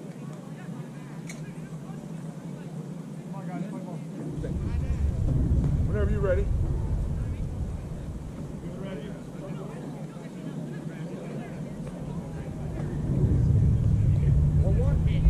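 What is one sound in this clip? Young men call out from a distance across an open field.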